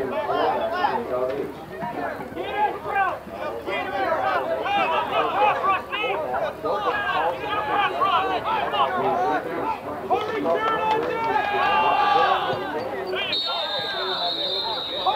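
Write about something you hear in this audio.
Many young men shout and chatter close by outdoors.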